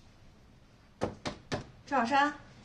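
A woman knocks on a door.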